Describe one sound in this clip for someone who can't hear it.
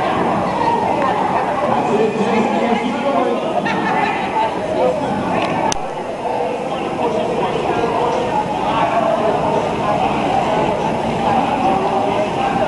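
Water splashes and churns as swimmers exercise in an echoing indoor pool.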